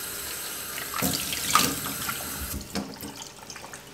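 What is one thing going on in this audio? A plastic container knocks against a metal sink.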